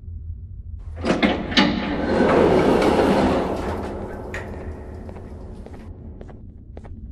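Heavy sliding doors rumble and hiss open.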